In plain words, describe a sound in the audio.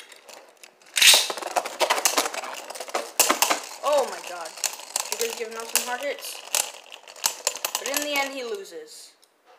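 Spinning tops clash with sharp clicks and knocks.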